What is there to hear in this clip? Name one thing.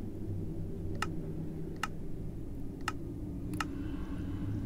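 Short, sharp interface clicks sound a few times.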